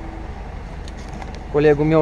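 A strap ratchet clicks as it is tightened.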